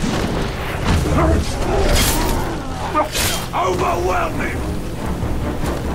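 A blade swishes and strikes.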